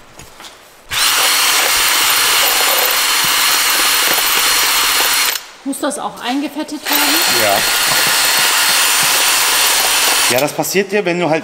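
A power drill whirs loudly in short bursts.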